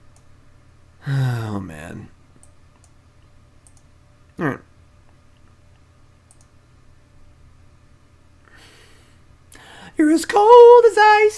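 A young man speaks in short bursts into a close microphone.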